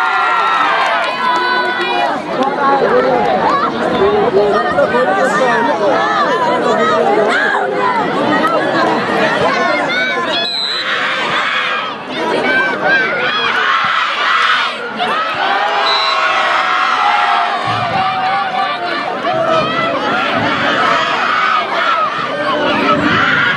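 A large outdoor crowd cheers and chatters loudly.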